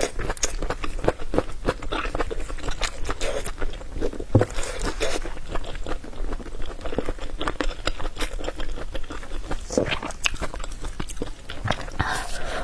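Crisp sausage skin crackles and crunches as a young woman bites into it.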